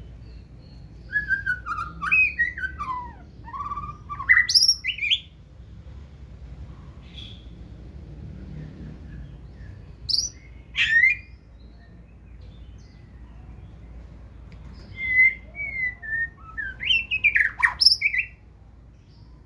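A caged songbird sings loud, varied whistling phrases in bursts.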